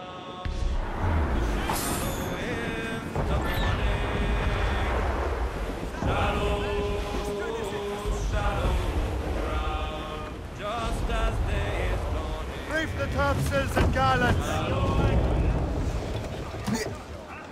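Waves crash and roar around a sailing ship in a storm.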